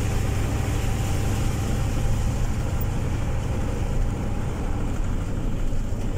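A vehicle's engine rumbles steadily from inside the cab.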